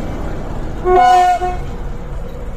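A locomotive horn sounds a short blast.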